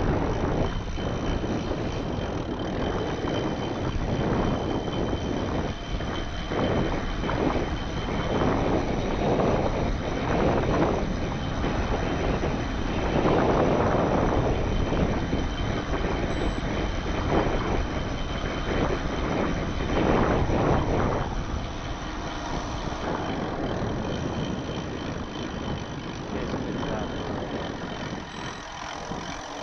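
Bicycle tyres roll and rumble over a rough road.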